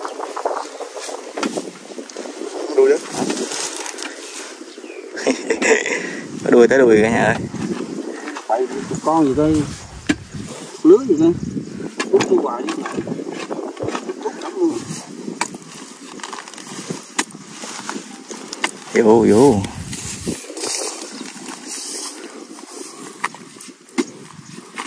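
A metal tool chops and scrapes into wet mud.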